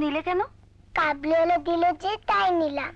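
A young girl speaks softly nearby.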